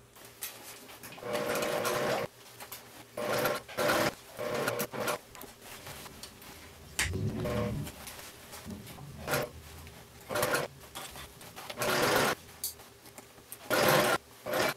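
A sewing machine runs in short bursts, stitching fabric.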